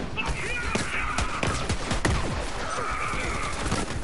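Laser blasts zap.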